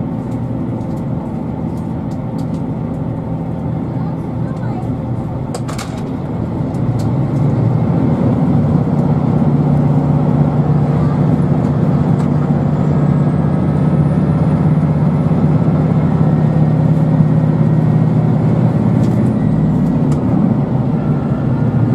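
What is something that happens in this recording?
A train rumbles steadily along the tracks, heard from inside a carriage, growing louder partway through.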